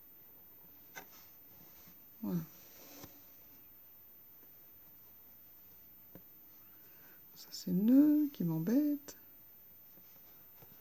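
Yarn rustles softly as it is pulled through stitches.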